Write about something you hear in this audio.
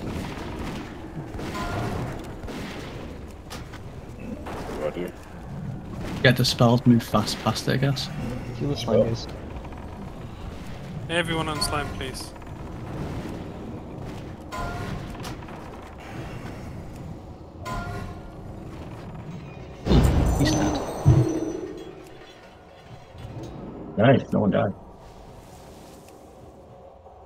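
Game spell effects crackle and boom during a battle.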